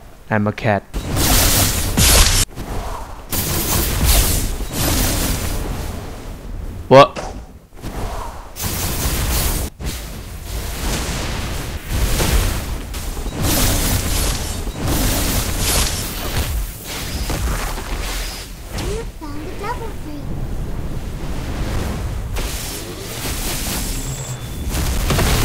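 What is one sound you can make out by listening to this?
Heavy impacts thud and boom.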